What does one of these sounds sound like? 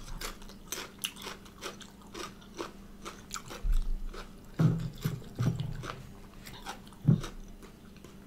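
A woman chews crunchy food close to the microphone.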